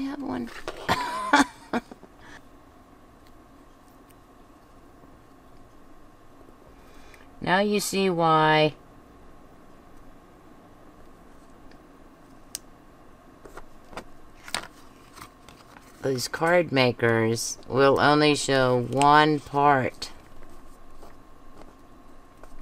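Paper rustles and taps softly as hands press strips onto a card.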